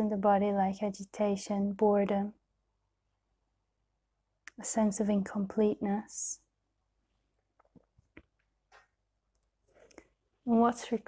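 A young woman speaks calmly and softly, close to a microphone, with long pauses.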